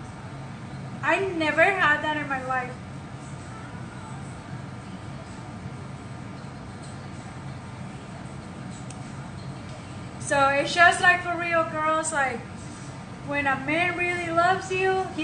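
A woman speaks with animation close to a microphone, in short bursts with pauses.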